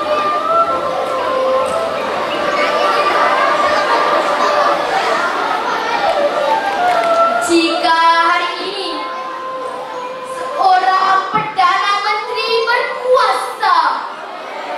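A boy speaks through a microphone and loudspeakers, reciting with expression.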